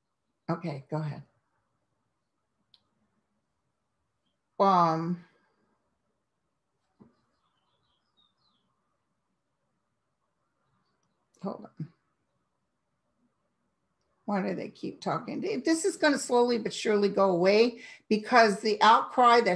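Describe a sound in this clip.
A middle-aged woman speaks calmly into a nearby microphone, with pauses.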